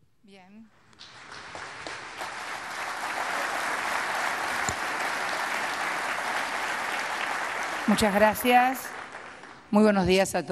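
A large crowd applauds in a big hall.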